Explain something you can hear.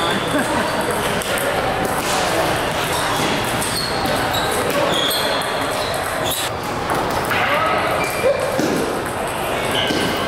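A busy, echoing hall is filled with the chatter of many voices.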